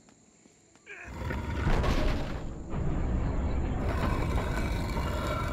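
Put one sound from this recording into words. A heavy stone door grinds and rumbles open.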